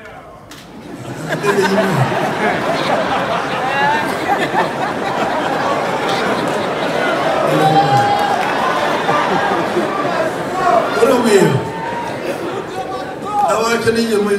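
A crowd laughs and cheers loudly.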